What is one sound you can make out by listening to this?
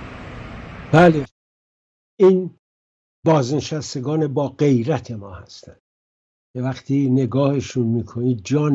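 An elderly man speaks calmly over an online call.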